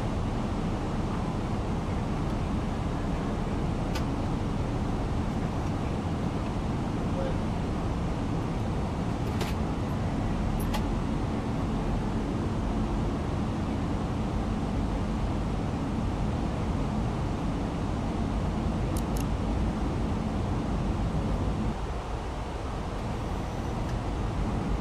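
Jet engines hum steadily inside a cockpit.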